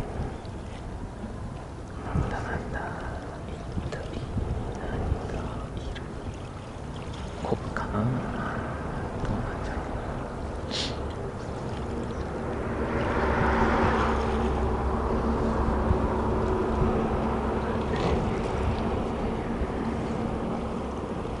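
Water laps gently against a stone wall.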